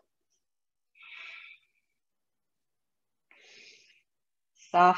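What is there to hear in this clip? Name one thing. A woman breathes out audibly.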